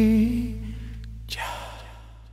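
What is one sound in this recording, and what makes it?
A man sings into a microphone.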